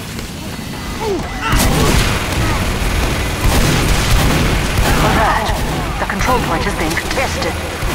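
A shotgun fires loud, sharp blasts.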